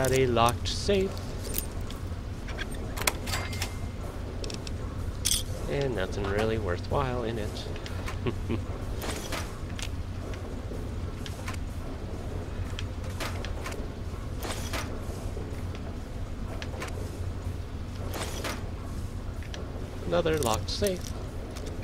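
A pick scrapes and clicks in a metal lock.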